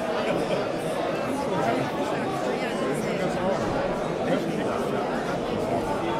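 An elderly man laughs.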